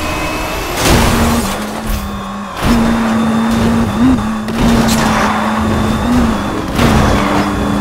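Metal debris crashes and scrapes against a car.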